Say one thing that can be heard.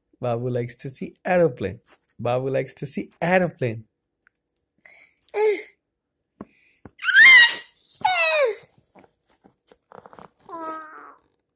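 A toddler babbles and squeals excitedly close by.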